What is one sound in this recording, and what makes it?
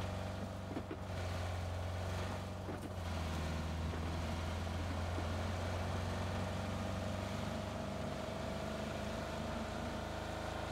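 A car engine hums steadily and revs as the car drives.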